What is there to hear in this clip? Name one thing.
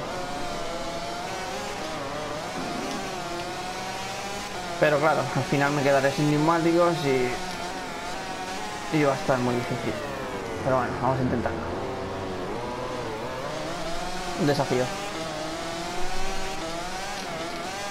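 A racing motorcycle engine whines steadily, rising and falling in pitch as it shifts gears.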